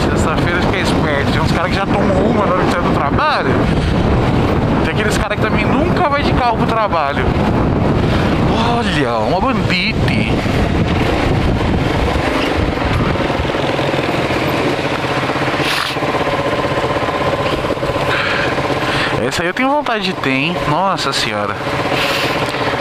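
A motorcycle engine hums and revs up and down close by.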